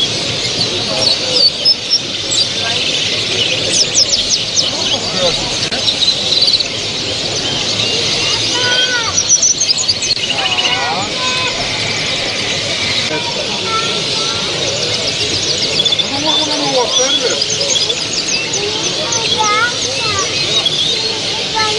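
Many small birds chirp and sing busily all around.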